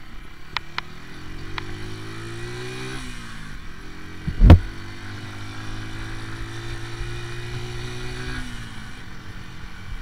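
A motorcycle engine revs up through the gears as it speeds away.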